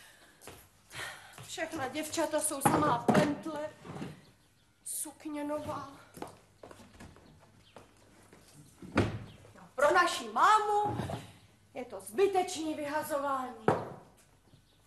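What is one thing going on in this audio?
A young woman sings.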